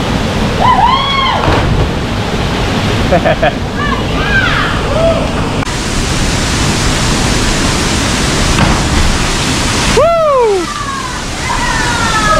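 A man splashes into deep water from a height.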